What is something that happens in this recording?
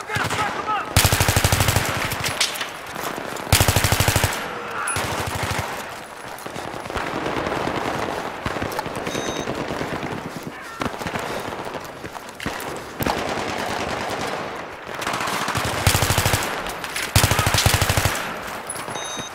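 Rifle fire crackles in rapid bursts close by.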